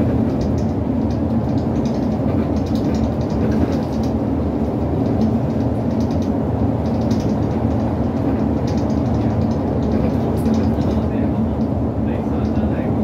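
Tyres roll and rumble on the road surface.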